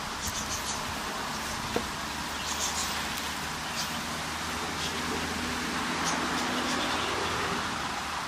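A goat nibbles and chews food from a hand close by.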